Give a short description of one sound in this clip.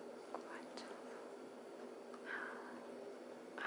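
A dog chews on a rubber toy.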